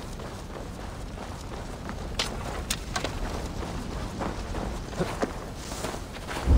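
Footsteps crunch softly over dirt and grass.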